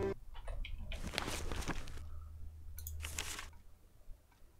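A book's page turns with a papery rustle.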